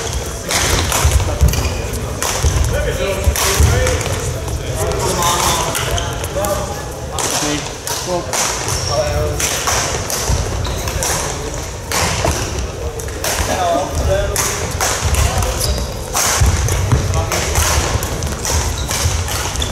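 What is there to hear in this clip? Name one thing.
Players call out and chatter in the echoing hall.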